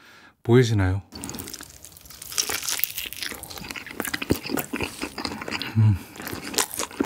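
A young man hums briefly with pleasure.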